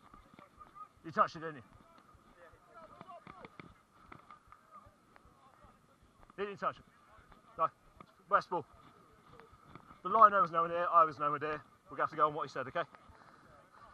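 Young men shout to one another outdoors.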